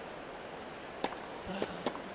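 Two players slap hands in a high five.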